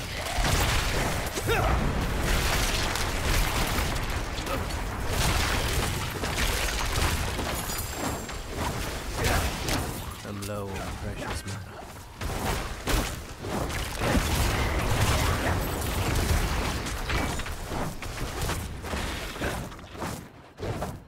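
Fiery blasts and clashing combat sounds boom loudly.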